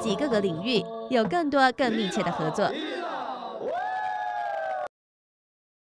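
Young women sing together in a high, lilting chant.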